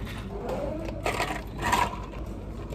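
Ice cubes rattle and clink as they are poured into a plastic cup.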